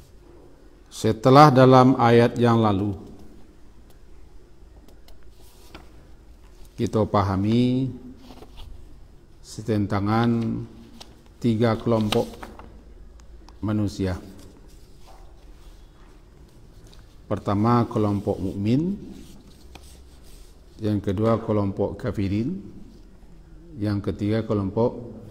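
An elderly man speaks slowly and calmly into a microphone, in short phrases with pauses.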